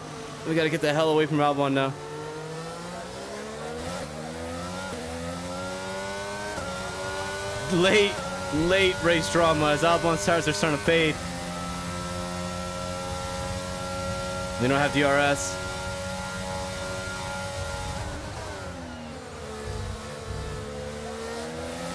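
A racing car engine whines loudly, rising in pitch and dropping with each gear change.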